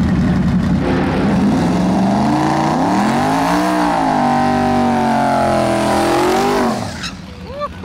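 A race car engine revs hard and wails up and down as its tyres spin.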